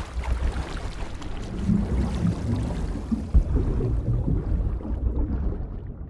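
Water splashes and churns as a swimmer plunges in.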